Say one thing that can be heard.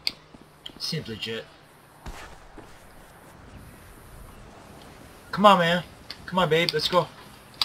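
Footsteps run across sand.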